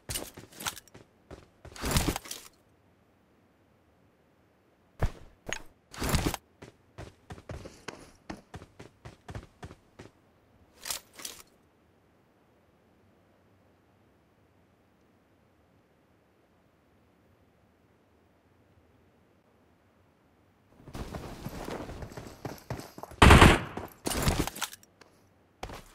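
Gunshots from a mobile game crack in quick bursts through a small speaker.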